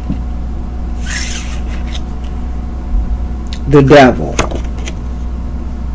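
Playing cards are shuffled and slid across a table.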